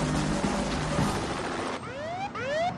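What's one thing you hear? A helicopter drones overhead.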